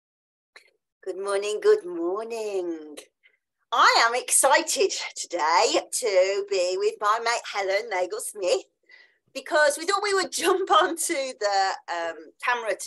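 A middle-aged woman talks warmly and cheerfully over an online call.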